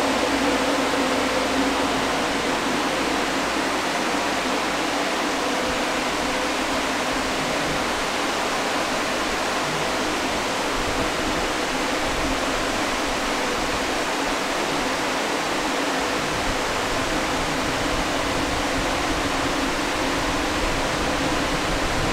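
Many cooling fans whir loudly and steadily.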